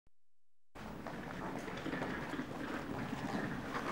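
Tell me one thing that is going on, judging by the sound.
A suitcase rolls on its wheels across a hard floor.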